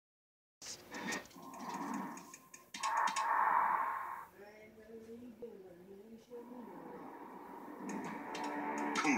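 Video game fight sounds and music play through a television speaker.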